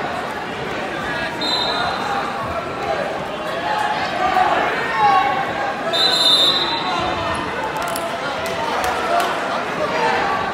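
A crowd chatters and cheers loudly in a large echoing gym.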